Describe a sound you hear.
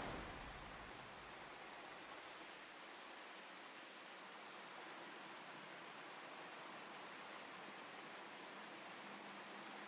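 Soft wind blows steadily outdoors.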